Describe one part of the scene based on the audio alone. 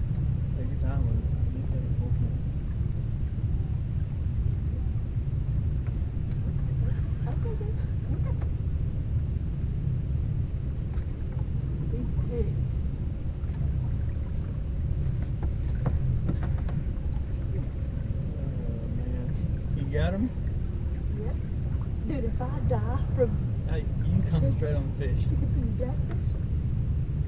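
Wind rumbles steadily across an open boat on the water.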